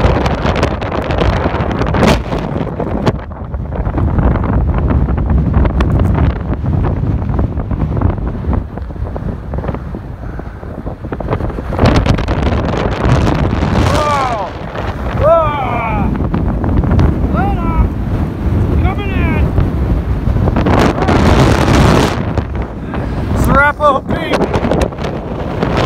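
Strong wind buffets and roars across open ground.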